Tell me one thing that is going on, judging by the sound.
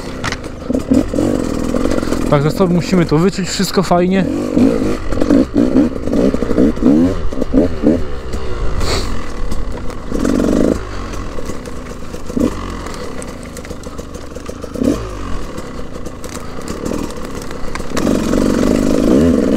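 Dry branches snap and crackle under the tyres.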